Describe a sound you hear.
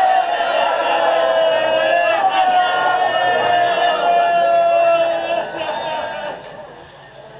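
A man chants loudly through a microphone.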